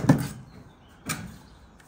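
A hammer strikes brick with a sharp knock.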